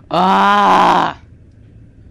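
A deep bell chimes loudly.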